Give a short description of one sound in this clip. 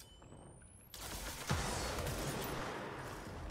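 A loud blast booms.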